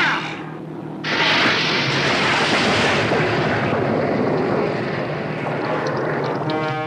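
Sea waves rush and splash.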